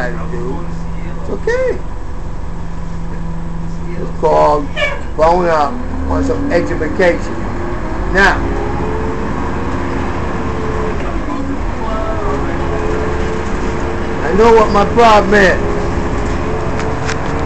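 A bus engine drones and whines as it pulls along.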